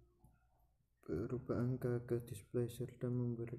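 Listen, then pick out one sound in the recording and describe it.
A man speaks calmly through a computer microphone.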